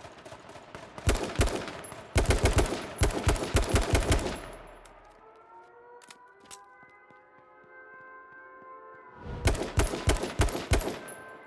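Rapid gunshots fire in loud bursts.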